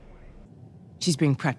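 A young woman replies firmly.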